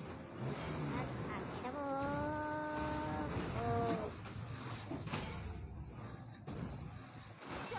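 Video game sound effects whoosh and clash.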